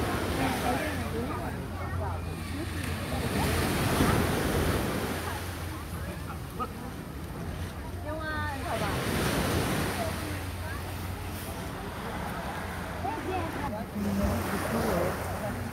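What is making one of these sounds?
Wind blows across the recording.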